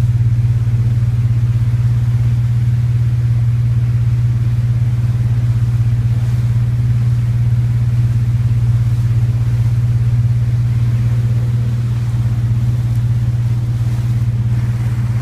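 A boat motor drones steadily and low.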